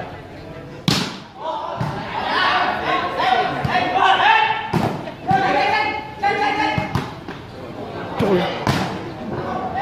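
A ball is kicked with sharp thumps.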